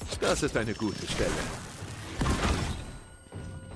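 A burst of magical energy whooshes and crackles.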